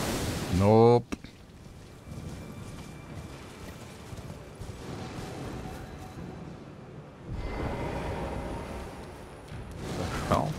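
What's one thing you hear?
A horse's hooves thud steadily on soft ground.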